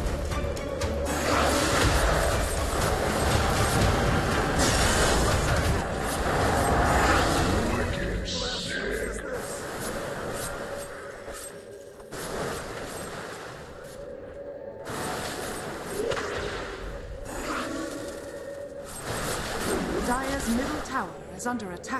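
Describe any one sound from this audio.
Fantasy battle sound effects of spells crackling and blasting rage loudly.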